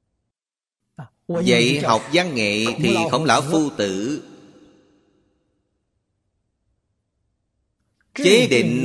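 An elderly man speaks calmly and expressively into a close microphone.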